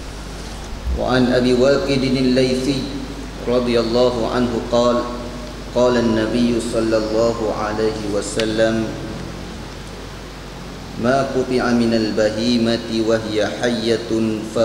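A young man speaks calmly into a microphone, heard through a loudspeaker in an echoing room.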